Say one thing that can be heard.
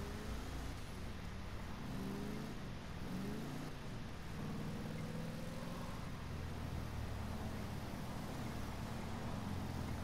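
Tyres screech as a car skids through a turn.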